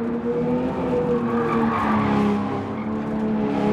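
Tyres screech through a corner.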